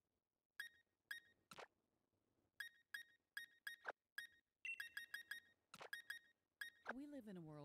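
Short electronic menu blips sound in quick bursts.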